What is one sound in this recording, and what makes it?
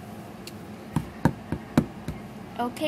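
Small hard objects knock on a wooden floor.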